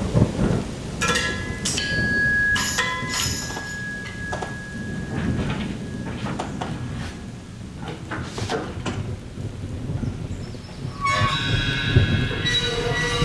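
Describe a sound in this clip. Metal bells and cymbals ring out with bright shimmering tones.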